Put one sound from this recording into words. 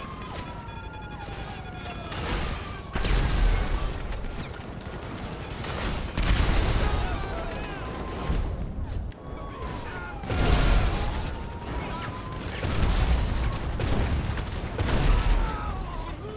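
Rockets whoosh as they are launched.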